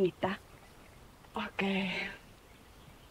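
A young woman speaks warmly nearby.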